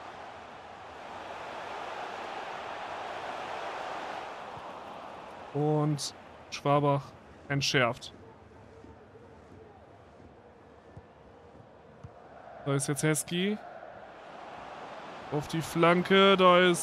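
A stadium crowd roars and murmurs, swelling and fading.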